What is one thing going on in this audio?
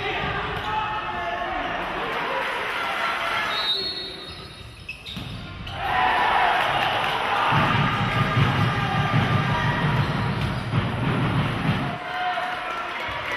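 A large crowd of spectators cheers and chants in an echoing hall.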